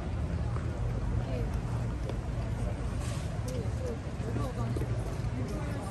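Footsteps scuff on cobblestones.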